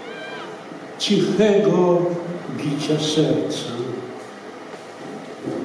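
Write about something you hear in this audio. An elderly man speaks into a microphone, heard through loudspeakers in a hall.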